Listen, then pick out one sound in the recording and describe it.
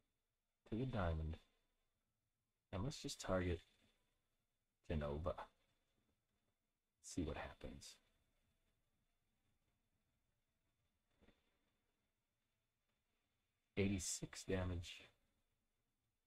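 A man speaks into a headset microphone in short bursts, close and clear.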